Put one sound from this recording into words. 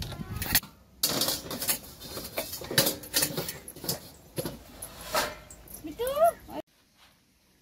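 Metal dishes clink and clatter.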